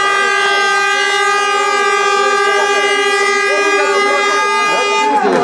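A crowd of fans chants and cheers loudly under a roof.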